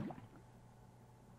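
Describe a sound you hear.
A blast booms and crackles.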